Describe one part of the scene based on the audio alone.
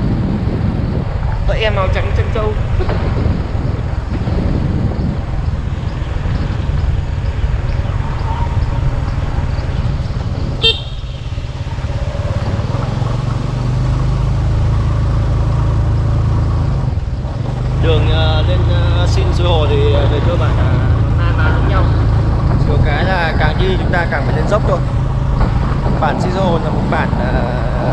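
A motorbike engine hums steadily.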